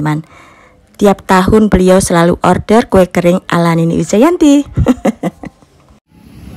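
A woman talks loudly and with animation close by.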